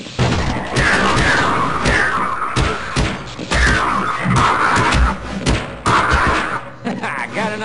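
A monster groans and screeches in pain.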